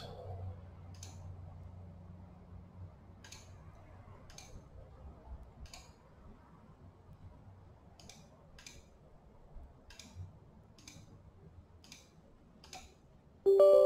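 A computer mouse clicks several times.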